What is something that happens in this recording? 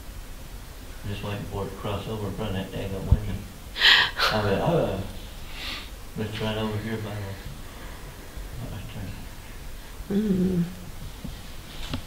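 An elderly man talks calmly.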